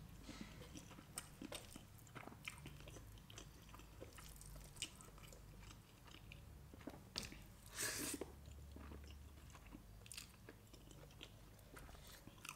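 A young woman chews food wetly and smacks her lips close to a microphone.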